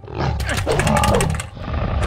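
A blade swings and strikes a creature.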